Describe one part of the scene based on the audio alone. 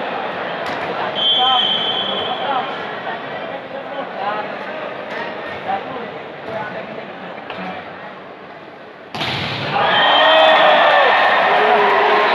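A large crowd murmurs and shouts in an echoing hall.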